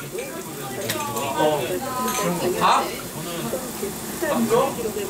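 Young women chat and laugh nearby in a lively group.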